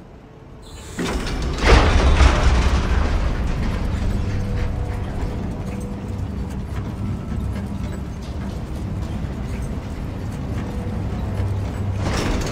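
A metal cage lift rumbles and clanks as it moves.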